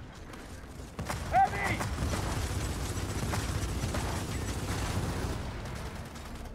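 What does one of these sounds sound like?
A rifle fires in rapid, rattling bursts.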